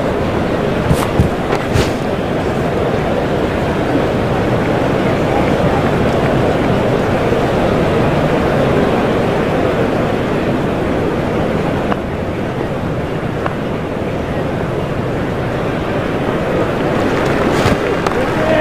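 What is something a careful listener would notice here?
A bat strikes a cricket ball with a sharp crack.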